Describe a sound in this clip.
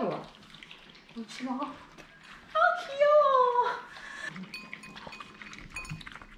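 Small dogs lap and chew food from bowls.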